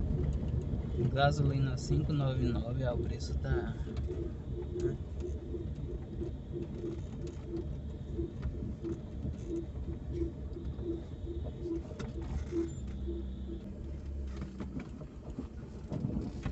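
A car engine hums low and steady, heard from inside the car.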